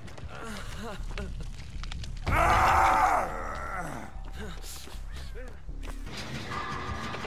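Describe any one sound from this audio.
Quick footsteps rustle through tall grass.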